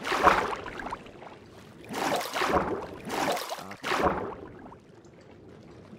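Water splashes as a swimmer moves through it.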